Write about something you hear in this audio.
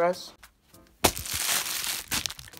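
A plastic package crinkles and rustles as hands handle it.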